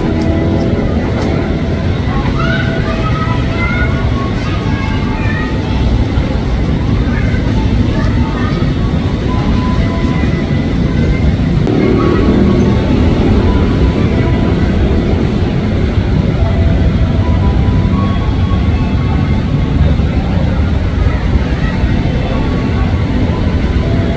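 An electric commuter train approaches on rails, its rumble growing louder.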